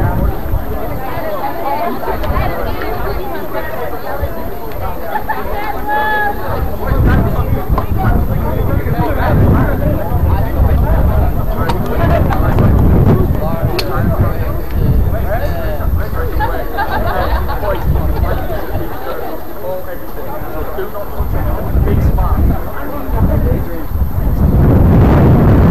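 Several young men and boys talk and call out outdoors at a distance.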